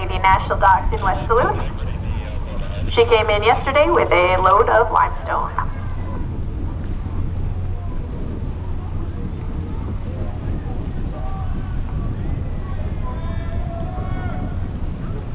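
A large ship's engine rumbles low and steady.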